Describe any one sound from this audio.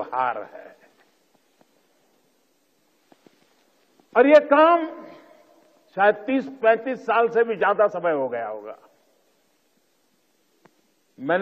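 An elderly man speaks slowly and firmly into a microphone, with pauses.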